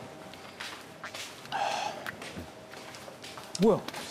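A man's footsteps tap across a hard floor.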